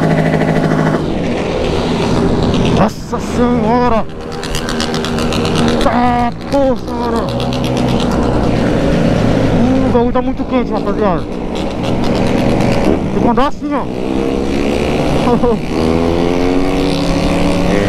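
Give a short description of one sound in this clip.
A motorcycle engine revs up repeatedly as the bike speeds up and shifts gears.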